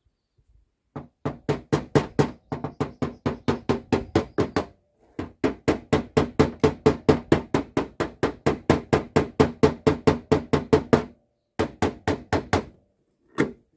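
A hammer taps rapidly and steadily on metal.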